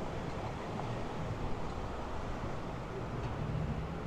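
A car drives past on a nearby street.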